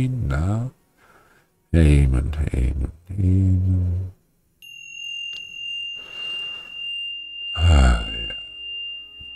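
An elderly man speaks and chuckles softly close to a microphone.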